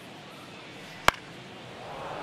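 A baseball smacks sharply into a catcher's glove.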